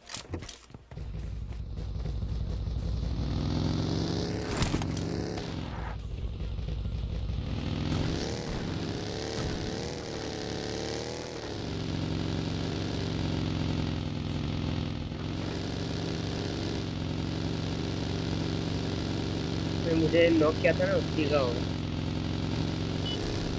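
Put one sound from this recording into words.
A buggy engine hums steadily and revs as it drives.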